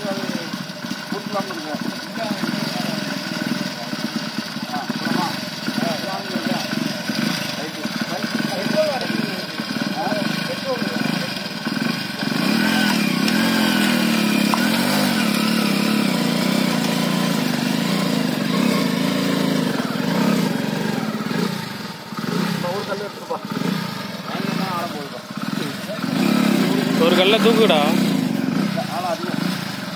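A motorcycle engine runs and revs.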